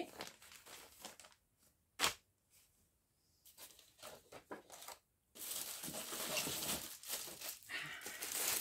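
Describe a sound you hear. Plastic-wrapped packages rustle and clatter as they are handled and set down.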